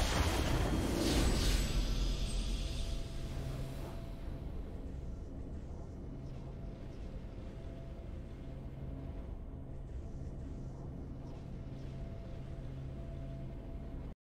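A triumphant fanfare plays steadily.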